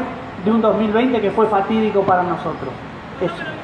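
A man speaks loudly through a microphone and loudspeaker outdoors.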